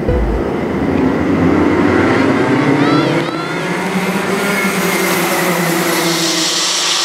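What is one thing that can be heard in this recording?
Kart engines roar loudly as a pack of karts starts a race.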